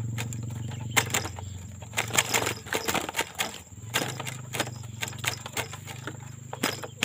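A small bird flutters and scrabbles inside a wire cage.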